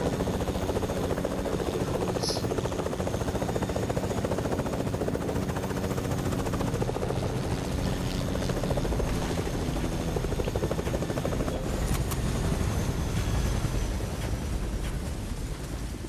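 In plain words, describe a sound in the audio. A helicopter's rotor whirs and drones steadily.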